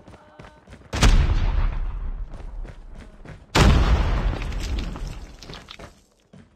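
A gun fires loud bursts of shots.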